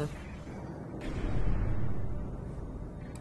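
A sci-fi gun fires with a zapping whoosh.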